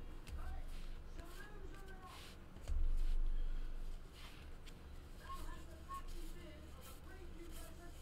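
Trading cards shuffle and slide against each other.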